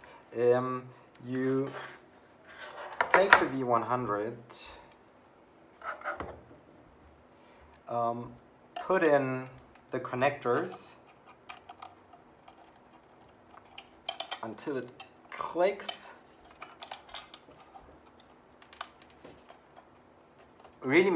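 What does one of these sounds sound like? Small metal and plastic parts click and rattle as they are handled.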